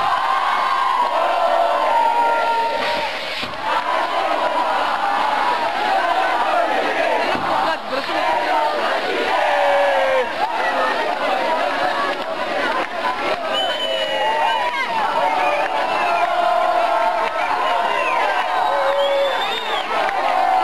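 A large crowd of young men chants and shouts loudly outdoors.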